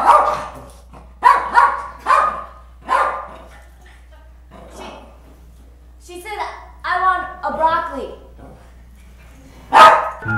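A woman speaks close to a microphone in short, lively bursts.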